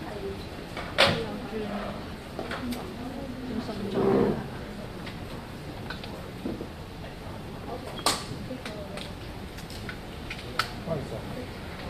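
Objects are set down on a table with sharp knocks.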